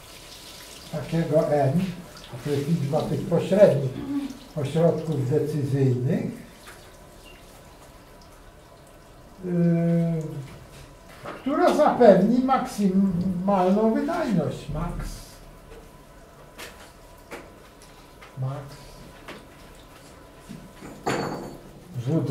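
A middle-aged man speaks calmly, as if explaining, close by.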